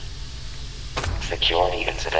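A heavy weapon swings through the air with a whoosh.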